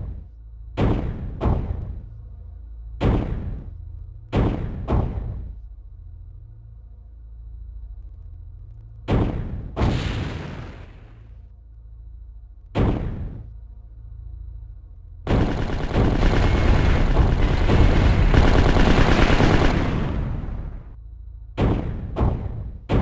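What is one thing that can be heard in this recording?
Heavy gun blasts boom one after another, each with a fading rumble.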